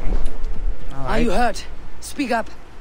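A man speaks calmly to another man.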